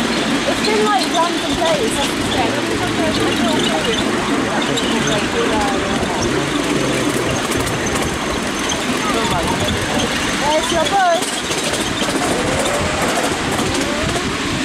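A small train rumbles and clatters steadily along a track.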